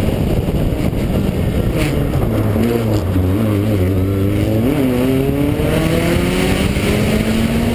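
A rally car engine roars loudly, its revs rising and falling as it shifts gears.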